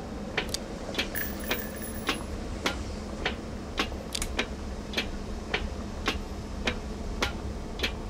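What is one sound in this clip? Footsteps thud steadily along a hard floor.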